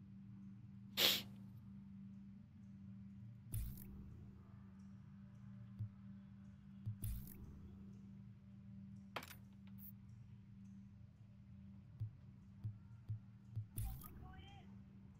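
Short electronic menu sounds click and whoosh now and then.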